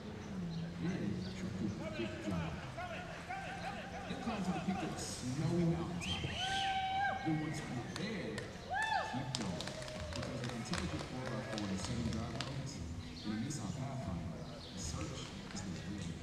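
Horse hooves thud on soft dirt in a large echoing hall.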